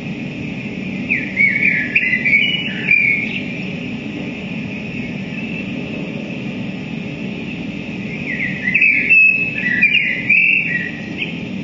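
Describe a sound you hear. A low electronic drone hums steadily through amplifiers.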